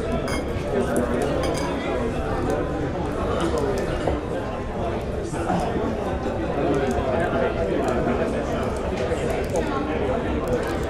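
A crowd of men and women chatter at once in a busy, echoing room.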